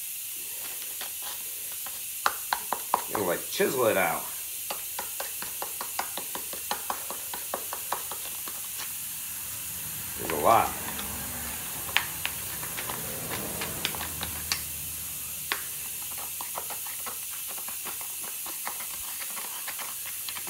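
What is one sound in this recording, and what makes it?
Metal tools click and clink sharply, on and off.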